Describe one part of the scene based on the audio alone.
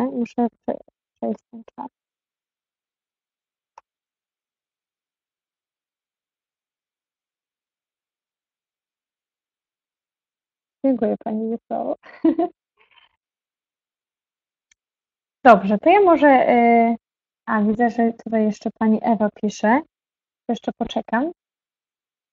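A young woman talks with animation through an online call, with pauses.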